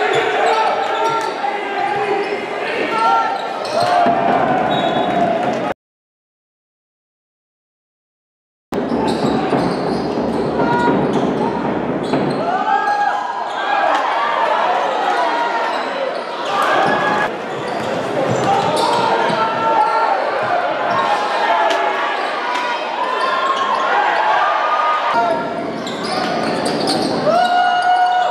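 Spectators murmur in the stands of a large arena.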